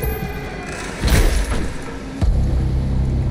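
A heavy blow lands with a loud, crunching thud.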